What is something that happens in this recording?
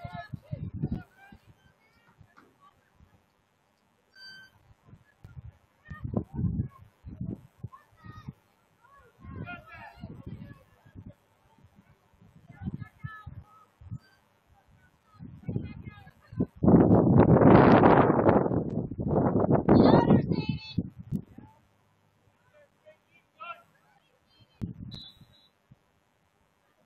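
Young women call out to each other across an open field in the distance.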